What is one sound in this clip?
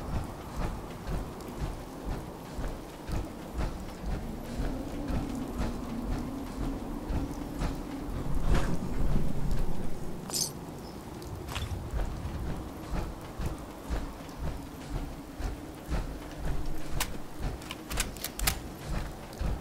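Heavy metal footsteps thud in a steady rhythm.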